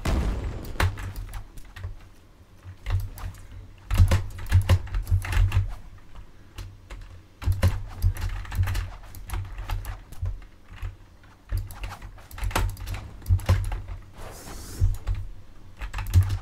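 Sword slashes and impacts hit repeatedly in a game fight.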